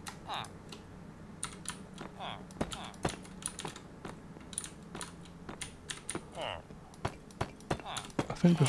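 Blocks are placed with short soft knocks.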